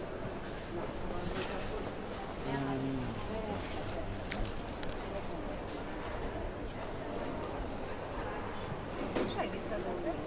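A crowd of men and women chatter in a busy indoor hall.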